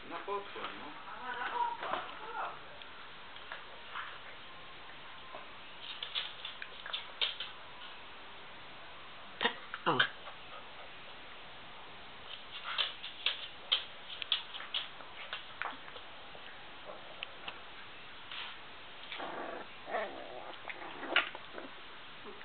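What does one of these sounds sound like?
A puppy whines and yelps.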